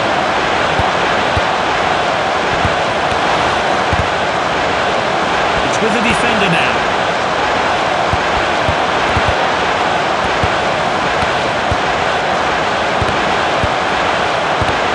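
A stadium crowd roars steadily throughout.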